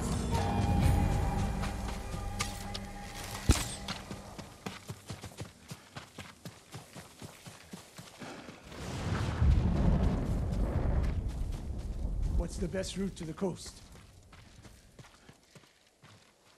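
Footsteps run and rustle through tall grass.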